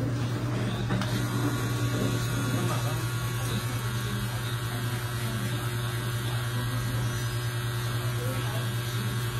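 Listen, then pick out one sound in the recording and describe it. A tattoo machine buzzes steadily.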